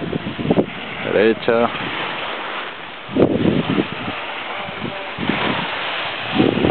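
Skis scrape and hiss over hard snow close by.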